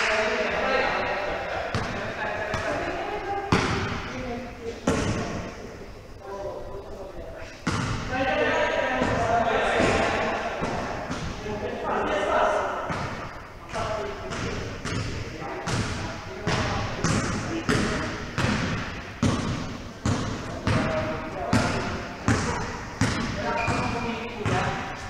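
A basketball bounces repeatedly on a hard court, echoing in a large hall.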